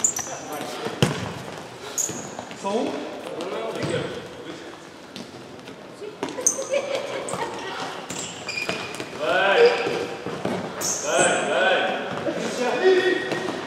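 A ball is kicked with sharp thuds in an echoing hall.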